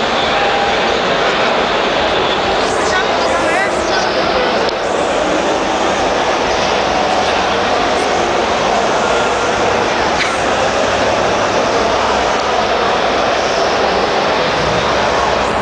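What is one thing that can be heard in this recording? A large crowd murmurs and chatters loudly in a big echoing hall.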